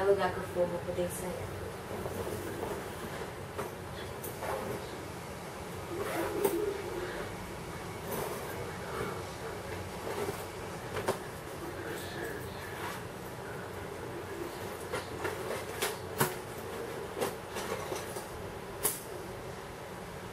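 A backpack's fabric rustles.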